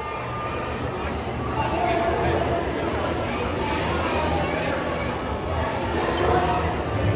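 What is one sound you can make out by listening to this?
A crowd of people chatters all around in a large echoing hall.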